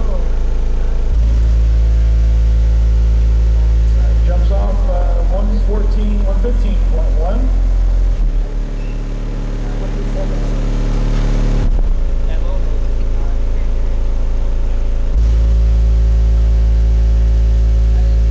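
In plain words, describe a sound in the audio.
Loud, deep bass tones boom steadily from a car's sound system and shift in pitch every few seconds.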